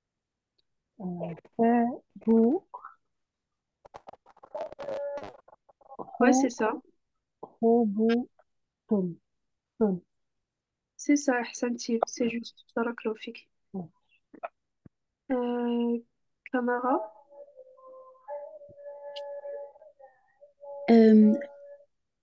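A young woman speaks slowly and clearly, heard through an online call.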